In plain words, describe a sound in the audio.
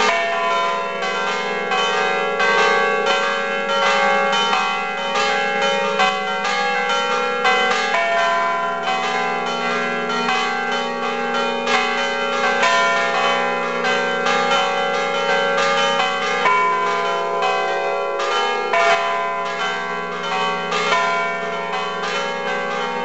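Church bells ring rapidly and continuously close by.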